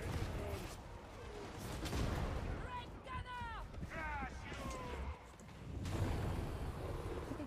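Guns fire in rapid bursts with heavy thuds.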